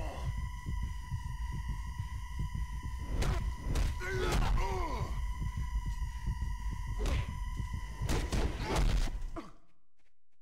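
Heavy stomps and blows land on a body.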